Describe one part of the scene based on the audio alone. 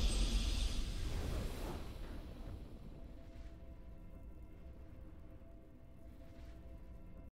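A triumphant game fanfare swells and then slowly fades.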